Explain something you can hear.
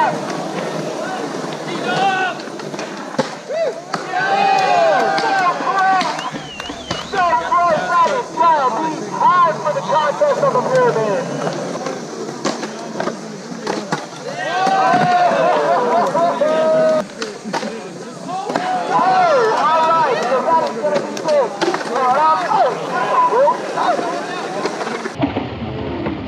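Young men talk and call out nearby outdoors.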